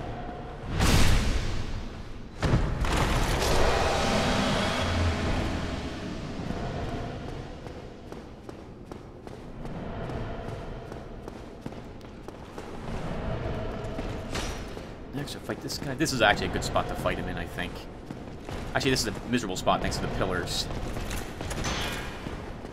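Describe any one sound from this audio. Metal weapons clash and strike armour in a fight.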